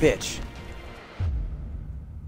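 A young man groans loudly into a headset microphone.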